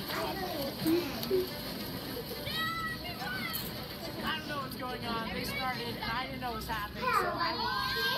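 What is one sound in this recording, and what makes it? A young girl slurps noodles.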